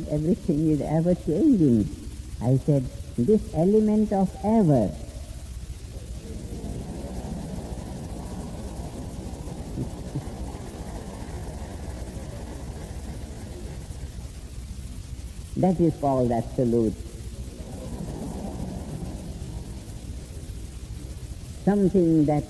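A man speaks calmly with long pauses.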